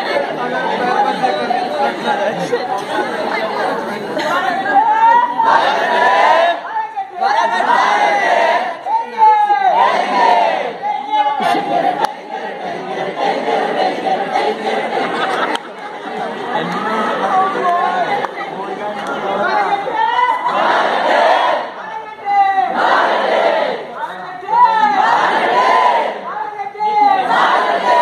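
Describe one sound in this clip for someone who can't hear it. A large crowd of young men and women cheers and shouts outdoors.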